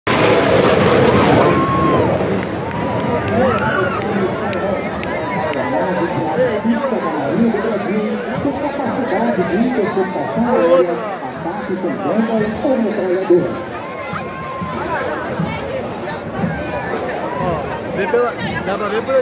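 A large outdoor crowd chatters and cheers nearby and in the distance.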